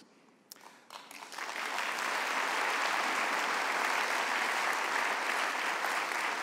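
A large audience applauds steadily.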